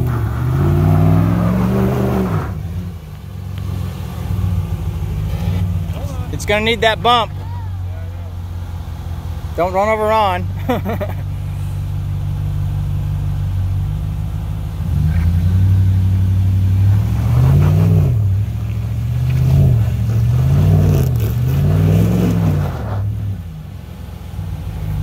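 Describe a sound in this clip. A truck engine rumbles and revs up and down as it climbs.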